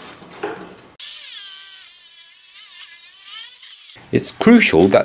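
A chop saw screeches loudly as it cuts through metal.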